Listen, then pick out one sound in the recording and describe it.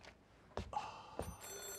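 A phone rings briefly.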